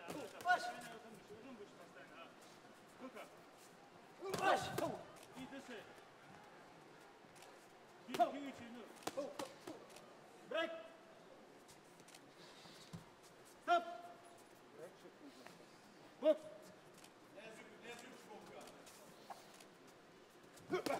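Boxing gloves thud against bodies in short bursts.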